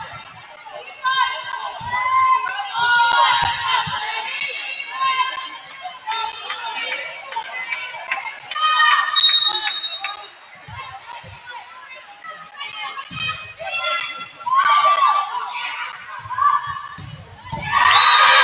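Young women shout and call out to one another in a large echoing gym.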